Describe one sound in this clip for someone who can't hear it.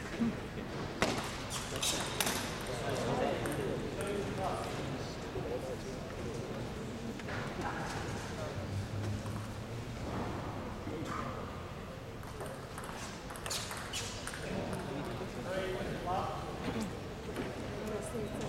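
A table tennis ball clicks off paddles and the table in a quick rally.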